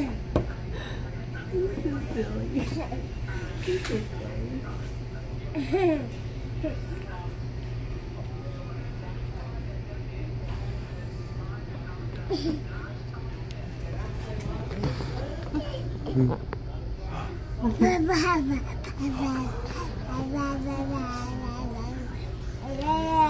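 A young woman laughs softly up close.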